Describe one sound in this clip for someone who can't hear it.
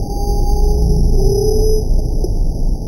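A dog growls and snarls up close.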